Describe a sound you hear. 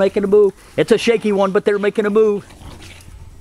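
A dog whines and yelps in short bursts.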